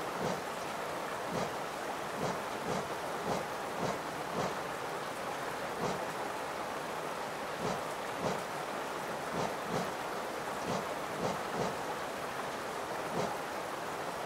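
Soft game menu clicks tick repeatedly as a selection moves.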